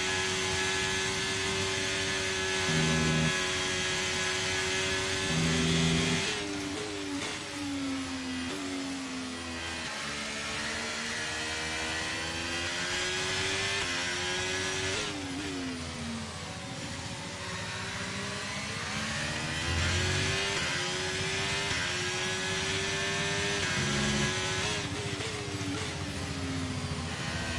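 A racing car engine screams at high revs, rising and dropping in pitch as gears change.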